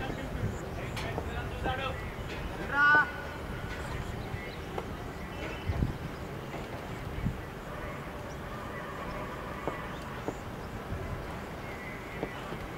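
Wind rumbles across an open field.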